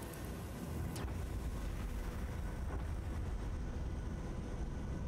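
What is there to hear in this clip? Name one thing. A loud explosion booms and rumbles deeply.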